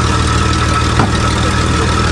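A truck door slams shut.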